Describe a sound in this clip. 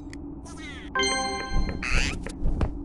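A bright chime rings out once.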